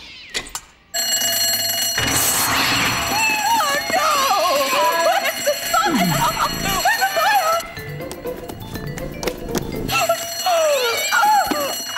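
An alarm bell rings loudly and steadily.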